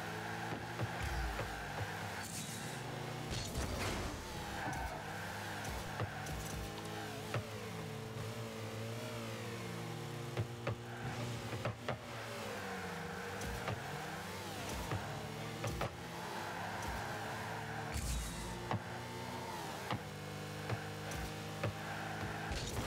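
Cars boost with a rushing whoosh.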